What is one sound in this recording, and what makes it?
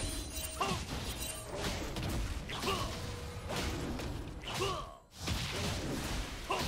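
Video game attack sounds hit again and again.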